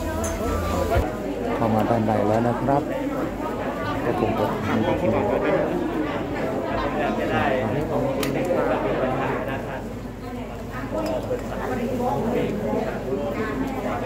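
Many men and women murmur together in an echoing hall.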